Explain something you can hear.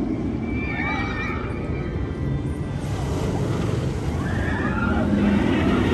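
A roller coaster train roars and rumbles along its track.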